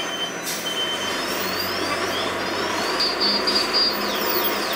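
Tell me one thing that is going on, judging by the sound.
A large truck's engine rumbles as it rolls slowly along the street.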